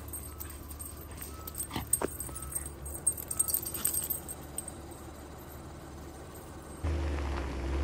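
Dogs' paws patter on gravel.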